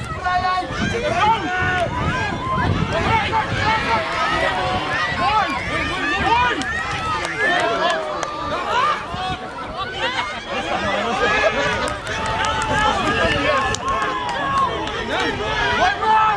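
A crowd of spectators shouts and cheers excitedly outdoors, close by and further off.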